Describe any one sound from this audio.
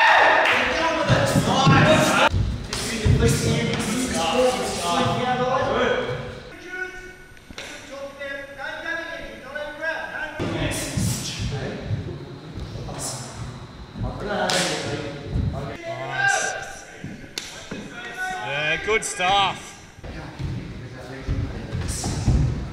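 Gloved punches and kicks thud against bodies and pads in an echoing hall.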